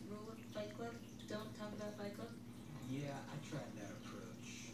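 A small kitten mews in high, thin cries.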